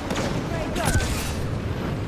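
A jetpack roars with a rushing burst of thrust.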